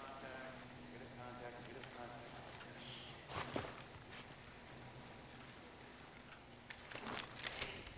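Grass rustles as a person crawls through it.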